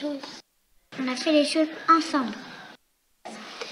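A small boy speaks softly.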